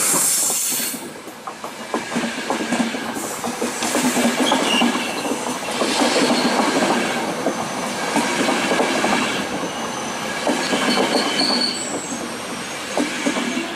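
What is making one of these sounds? A passenger train rumbles and clatters past close by.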